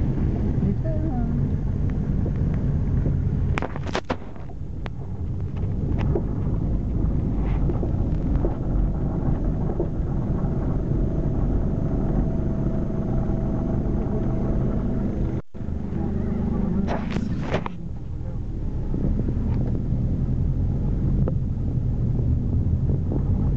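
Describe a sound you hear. Traffic rumbles along the street outside.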